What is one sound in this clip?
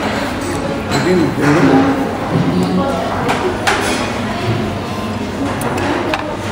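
Chopsticks clink against dishes.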